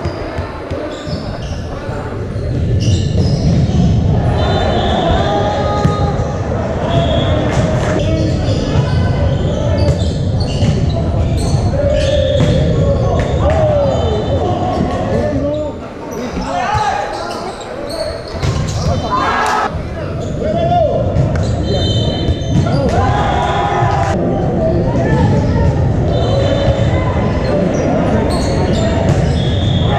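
A crowd of players and spectators chatters and shouts in a large echoing gym.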